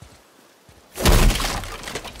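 A heavy body lands with a thud.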